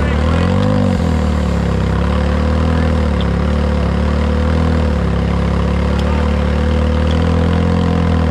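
An engine idles loudly and steadily close by, with a brief rev near the start.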